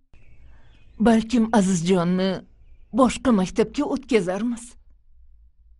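An elderly woman speaks earnestly, close by.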